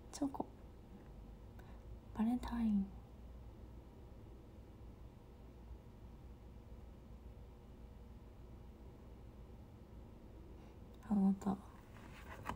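A young woman speaks softly and briefly, close by, with long pauses.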